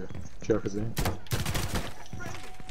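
A rifle fires a quick burst of gunshots.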